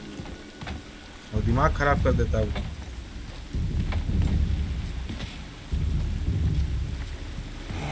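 Heavy footsteps thud on wooden planks.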